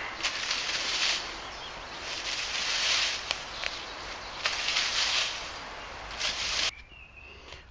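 Dry leaves crunch under footsteps.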